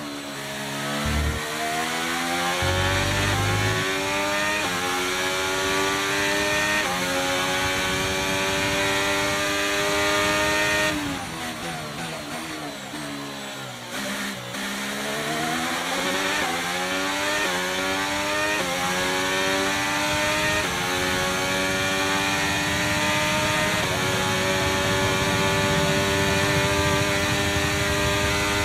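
A racing car engine screams, rising in pitch through each gear and dropping sharply at every shift.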